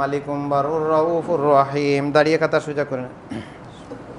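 A man speaks into a microphone through a loudspeaker, in a large echoing hall.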